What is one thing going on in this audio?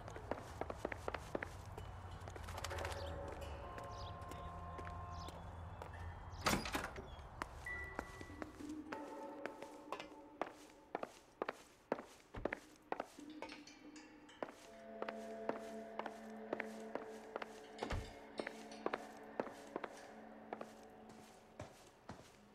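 Footsteps thud steadily on wooden stairs and boards.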